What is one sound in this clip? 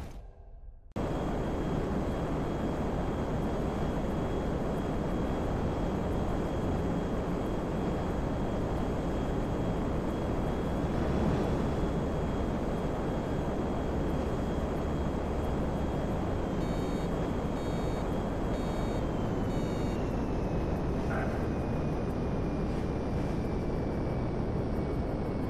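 A fighter jet's engine roars in flight.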